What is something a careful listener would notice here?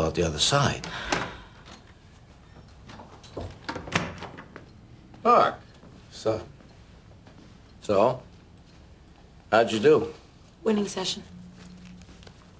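A young woman speaks quietly and tensely.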